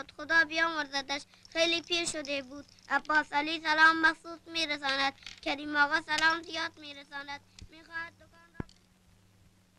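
A man sings loudly with a wavering voice.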